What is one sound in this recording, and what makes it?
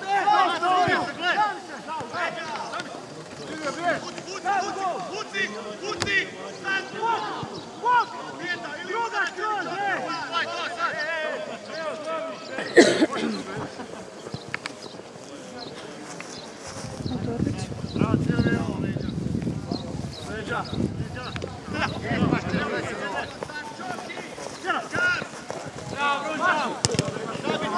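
Football players shout to each other across an open field.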